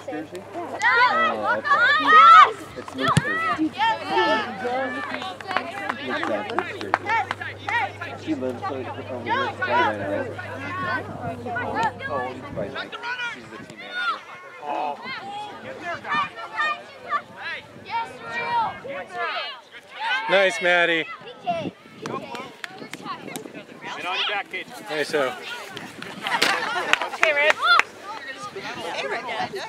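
Adult spectators nearby talk and call out outdoors.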